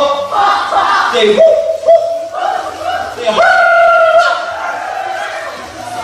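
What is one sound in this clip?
A young man sings into a microphone, heard through a loudspeaker.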